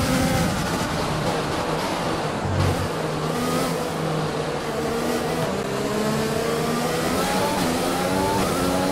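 A racing car engine roars and shifts pitch as it speeds up and slows down.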